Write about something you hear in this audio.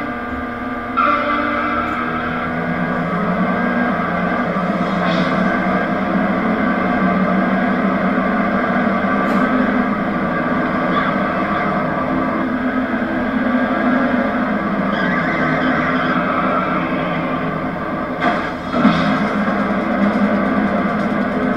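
Racing car engines roar and whine as the cars speed along.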